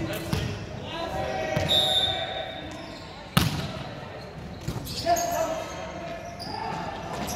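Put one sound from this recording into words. Several young people shout and call out in a large echoing gym.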